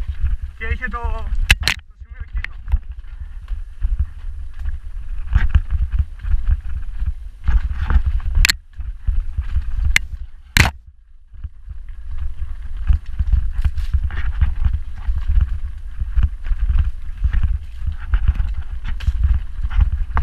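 Bicycle tyres rumble and crunch over a rocky dirt trail.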